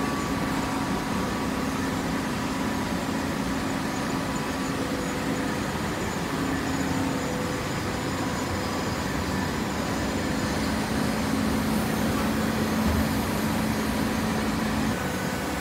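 Heavy machinery hums and rumbles steadily in a large echoing hall.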